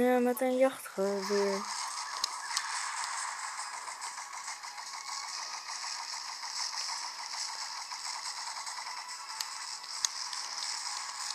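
A small speaker plays a game's roaring boat engine and rushing spray.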